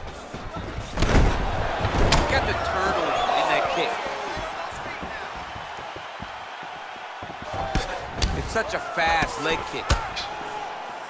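Punches land with heavy thuds.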